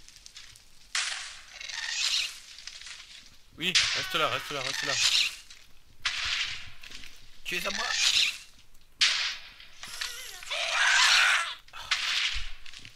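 A large floating creature lets out high, eerie wails and shrieks.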